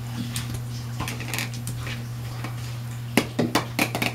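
A dog's claws click on a wooden floor.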